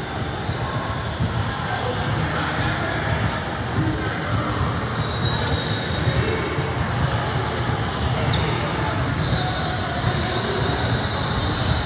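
A crowd chatters in a large echoing gym.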